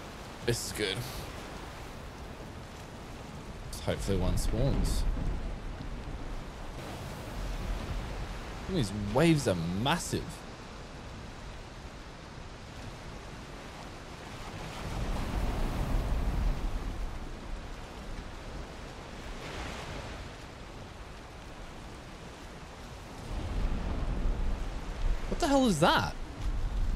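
Storm wind and waves roar around a wooden ship.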